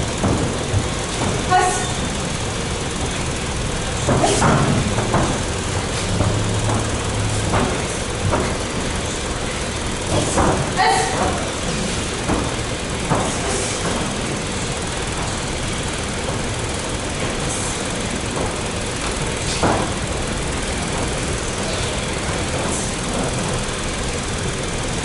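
Bare feet thump and shuffle on a padded mat.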